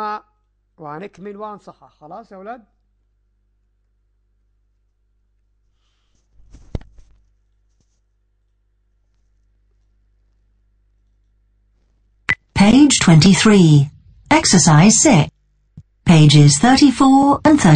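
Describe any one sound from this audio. A young man speaks calmly and closely into a microphone.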